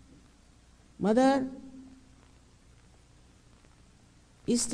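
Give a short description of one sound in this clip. An elderly woman speaks into a microphone.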